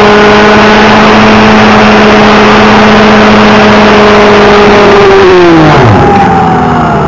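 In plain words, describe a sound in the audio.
A model helicopter engine whines loudly, then drops in pitch and winds down.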